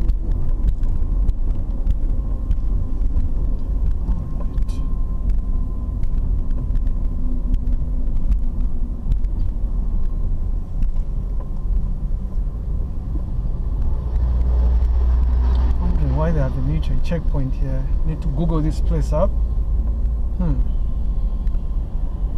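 Road noise rumbles from inside a car driving on asphalt.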